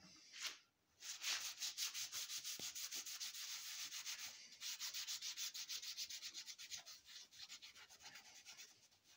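A cloth rubs briskly back and forth over a metal surface.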